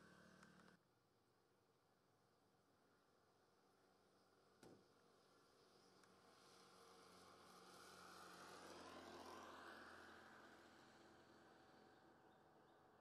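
A motorbike engine hums as it rides past on the road.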